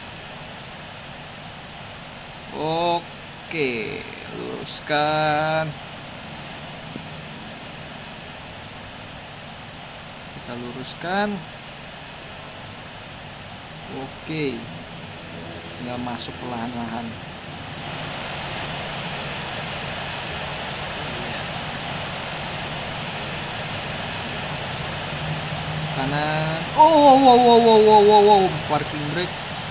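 A jet engine hums steadily and then grows louder as it spools up.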